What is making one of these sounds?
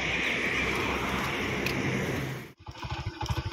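A car passes close by on a road.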